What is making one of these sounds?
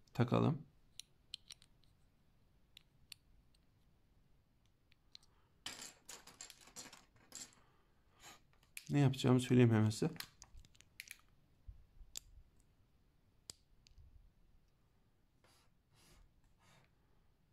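Plastic bricks click and rattle as they are handled.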